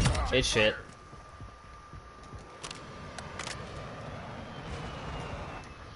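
A rifle magazine clicks into place during a reload.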